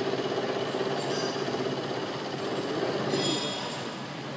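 A milling machine hums steadily.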